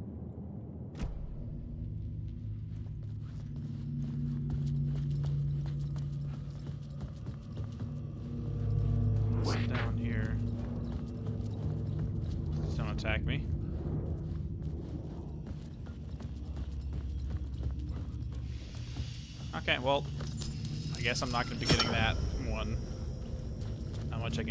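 A low rumbling drone hums through an echoing tunnel.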